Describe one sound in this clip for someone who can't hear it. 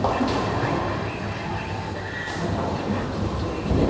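A bowling ball rolls and rumbles down a lane.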